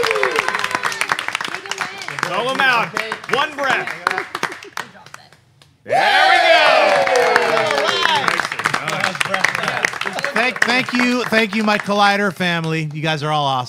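A group of men and women clap and cheer loudly.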